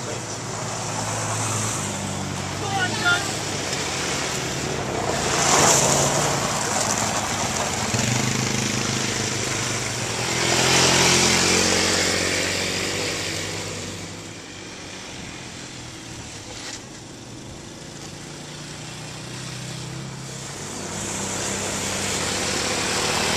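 Small quad bike engines hum and rev nearby.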